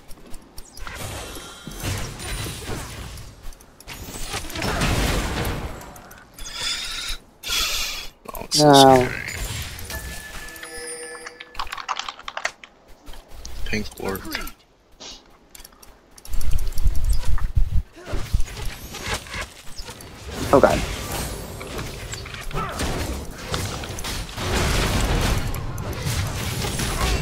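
Game spell effects whoosh and blast during a fight.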